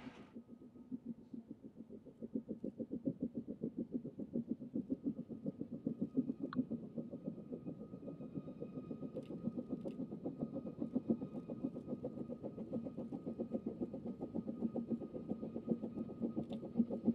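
A steam locomotive chuffs rhythmically in the distance and slowly draws nearer.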